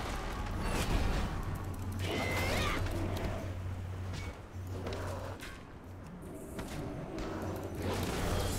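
Spell effects whoosh and crackle.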